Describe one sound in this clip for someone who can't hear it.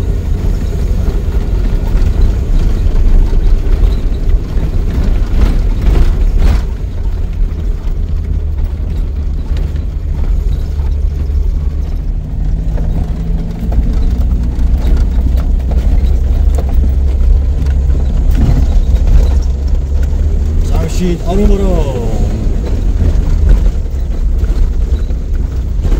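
Tyres crunch and rattle over a bumpy dirt track.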